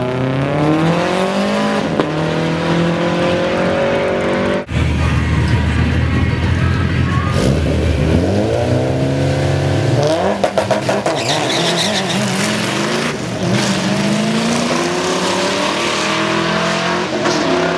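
A car engine roars loudly, rising in pitch and shifting through the gears as the car speeds away.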